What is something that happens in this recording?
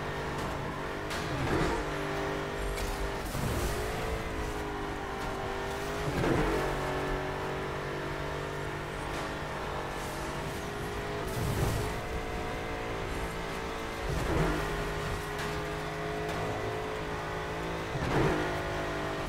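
A racing car engine roars at high speed, its pitch dipping and climbing again every few seconds.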